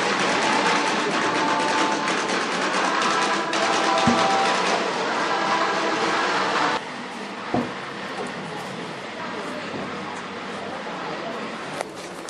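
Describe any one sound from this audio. A heavy wooden cross knocks and scrapes against stone steps.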